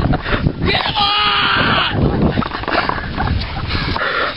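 A child shrieks and laughs excitedly close by.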